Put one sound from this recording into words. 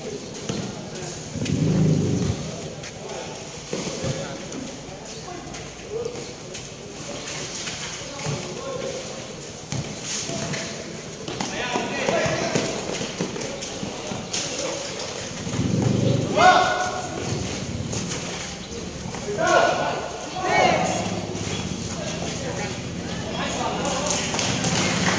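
Sneakers squeak on a concrete court.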